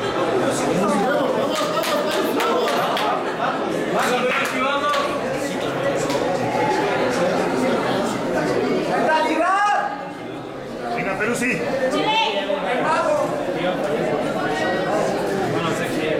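Sneakers squeak and tap on a wooden court floor.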